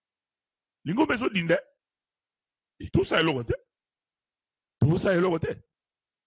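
A man speaks with animation into a close microphone, in short bursts.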